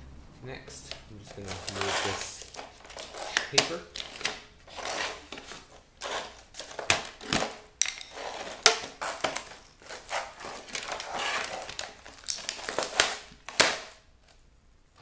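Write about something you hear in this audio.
Plastic parts crack and snap as they are pried apart by hand.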